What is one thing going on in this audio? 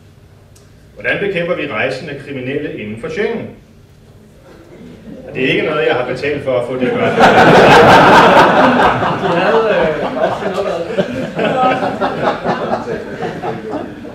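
A man speaks with animation into a microphone over loudspeakers in an echoing hall.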